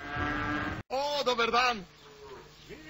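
An elderly man speaks nearby.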